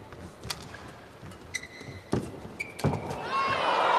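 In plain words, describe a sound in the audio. A shuttlecock is struck sharply back and forth with rackets.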